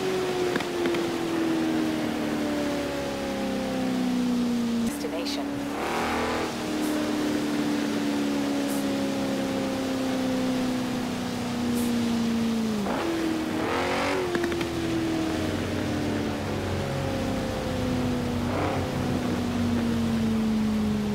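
A sports car engine roars and climbs through the gears, its pitch dropping at each gear change.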